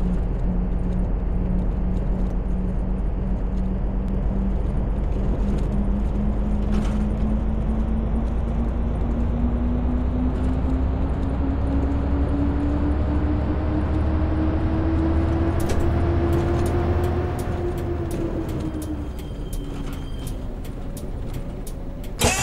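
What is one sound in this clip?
A diesel coach engine drones, rising in pitch as the coach speeds up and then dropping as it slows.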